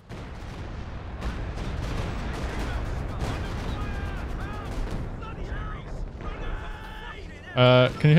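Explosions rumble and boom in the distance.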